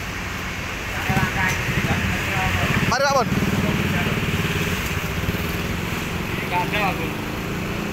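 A motorbike engine idles with a low rumble nearby.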